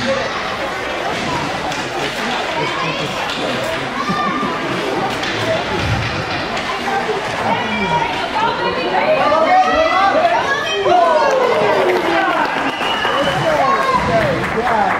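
Skate blades scrape across ice.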